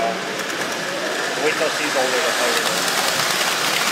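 A model train rattles along metal tracks.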